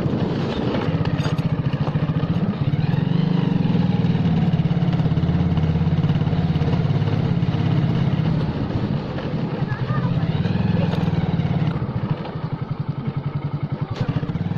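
A motorcycle engine putters steadily close by.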